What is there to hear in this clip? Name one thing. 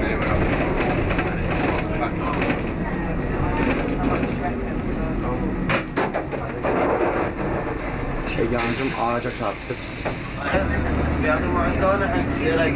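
A bus engine rumbles steadily as the bus drives along.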